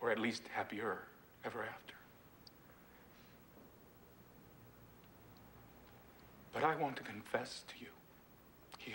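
A man speaks clearly in a calm, formal tone, with pauses between phrases.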